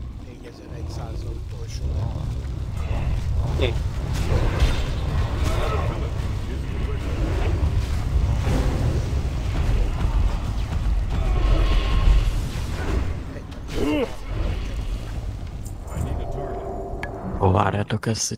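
A deep fiery roar rumbles underneath.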